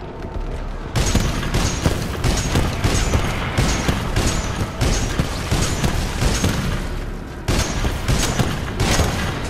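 A heavy gun fires in rapid, booming bursts.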